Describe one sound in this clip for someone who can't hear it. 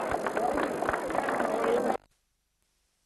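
A live band plays lively music outdoors.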